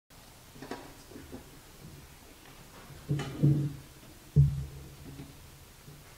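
Metal lids clink against trays.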